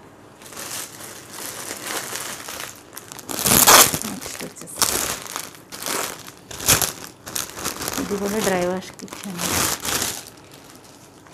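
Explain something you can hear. Plastic wrapping crinkles and rustles loudly close by.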